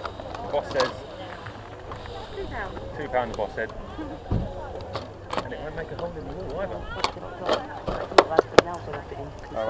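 Plastic cases clack and rattle as hands handle them.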